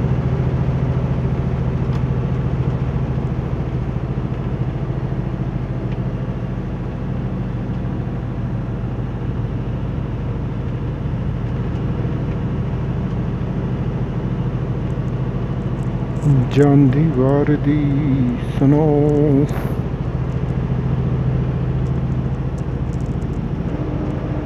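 A vehicle engine drones steadily while driving.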